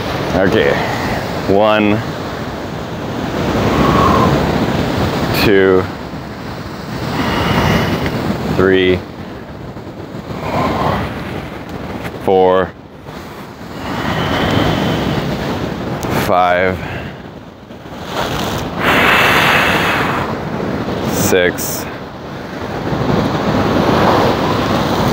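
Waves wash and crash against rocks outdoors.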